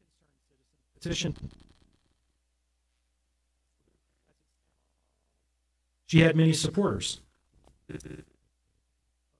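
A man speaks calmly into a microphone in short bursts, with long pauses.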